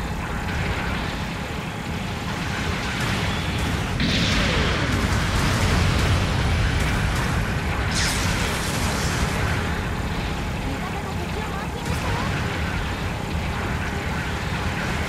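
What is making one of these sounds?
A large robot's engine rumbles steadily and deeply.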